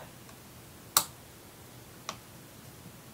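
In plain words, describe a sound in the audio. Small plastic parts click and tap under fingers.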